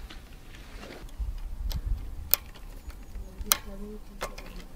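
A brake cable clicks as hands fit it into place.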